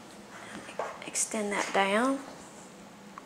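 An older woman talks calmly, close to a microphone.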